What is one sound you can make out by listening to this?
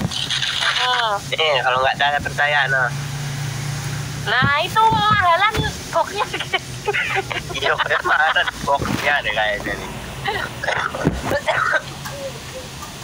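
A young man talks with animation over an online call.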